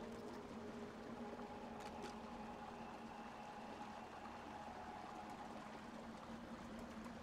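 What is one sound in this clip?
A torch fire crackles softly.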